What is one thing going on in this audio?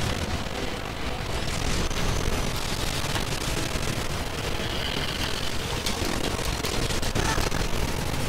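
Explosions roar and rumble loudly.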